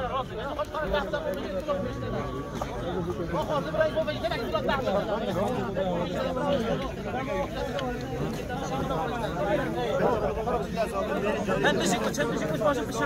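A crowd of men murmurs and talks nearby outdoors.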